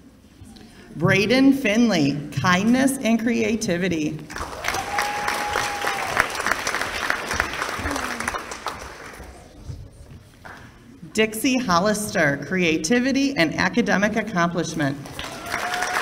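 A woman speaks calmly into a microphone, heard through loudspeakers in a large hall.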